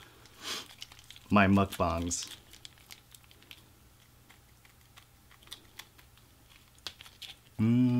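Paper wrappers crinkle and rustle.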